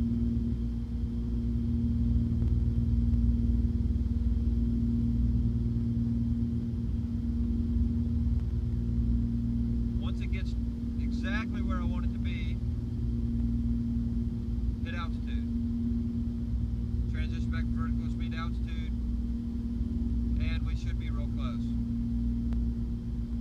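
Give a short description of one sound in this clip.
A small plane's engine drones steadily and loudly.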